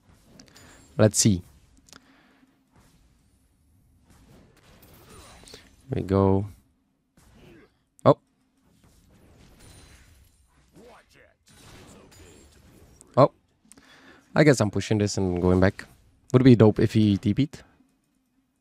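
A young man talks into a close microphone, in short bursts with animation.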